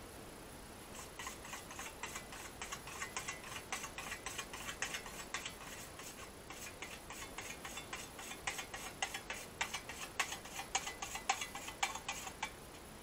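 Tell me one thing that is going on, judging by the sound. A scythe swishes through grass.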